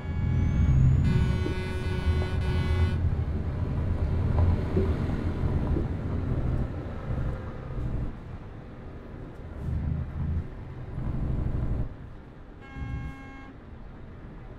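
A truck's air horn blares in short blasts.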